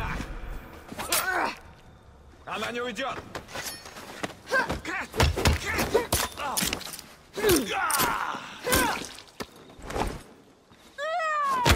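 Blades clash and strike in a fast fight.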